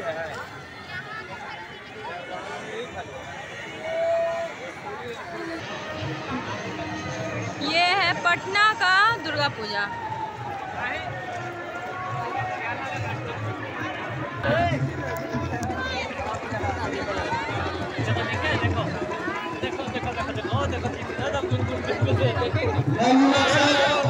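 A large crowd chatters and murmurs outdoors.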